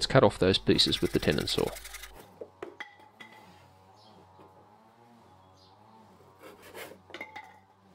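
A hand saw cuts through wood with quick strokes.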